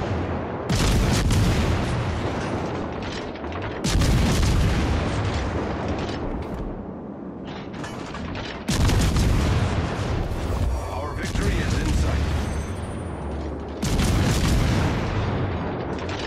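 Shell explosions rumble and crash in the distance.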